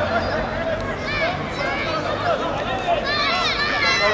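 Young children laugh and shout nearby.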